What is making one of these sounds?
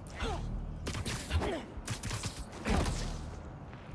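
Heavy blows land with sharp thuds.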